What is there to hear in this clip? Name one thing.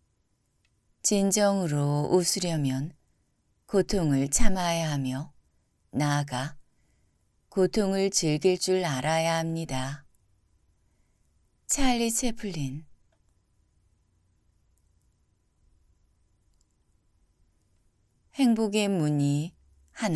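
A man reads aloud calmly and slowly into a close microphone, with long pauses.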